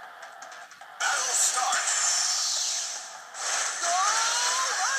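Video game battle sound effects whoosh and clash loudly.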